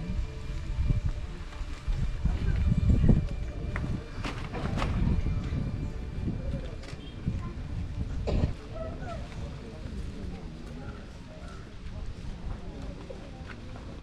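A large crowd of men murmurs and talks quietly outdoors.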